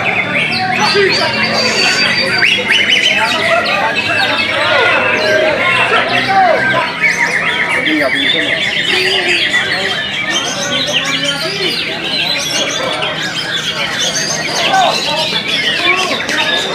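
A caged songbird sings loud, varied warbling phrases.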